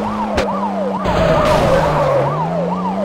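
Tyres skid and scrape over rough ground.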